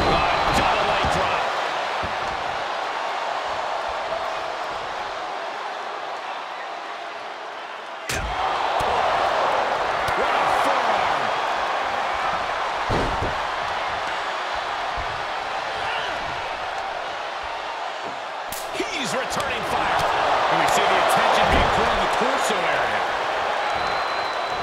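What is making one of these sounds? A large crowd cheers and roars throughout, echoing in a big arena.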